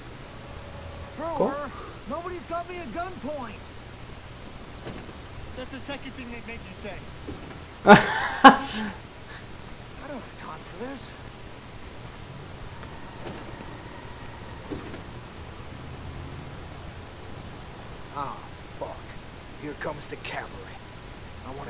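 A man speaks with frustration, close by.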